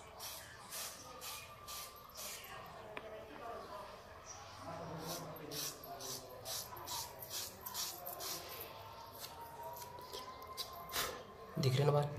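Fingers rub and scratch against bare skin in short, repeated strokes.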